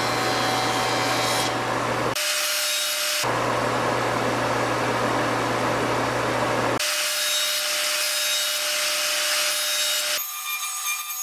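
A power jointer roars steadily as wood is fed across its cutter.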